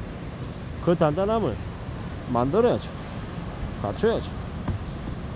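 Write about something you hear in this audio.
Waves wash gently onto the shore outdoors.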